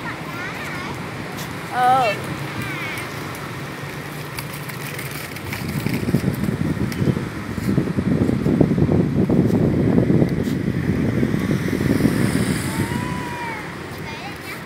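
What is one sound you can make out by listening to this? A young girl squeals and calls out in a high voice.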